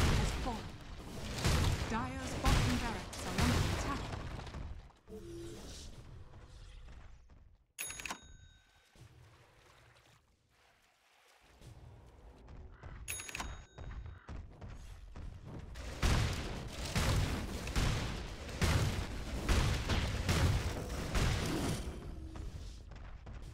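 Magical blasts and weapon strikes clash in a fast fight.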